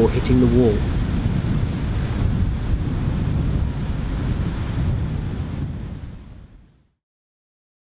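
Strong wind buffets outdoors with a low rumble.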